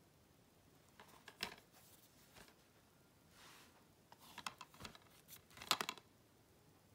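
A plastic case rattles and taps as a hand turns it over.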